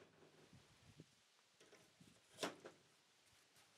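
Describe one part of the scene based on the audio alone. Metal snips crunch as they cut sheet metal.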